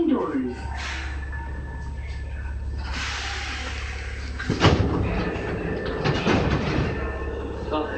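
A subway train rumbles low and steady while pulling through a station.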